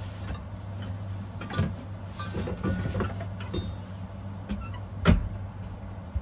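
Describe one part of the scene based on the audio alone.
Dishes clatter and knock close by.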